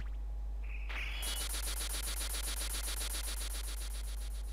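A rapid, rattling crackle of magical energy bursts out and keeps pulsing.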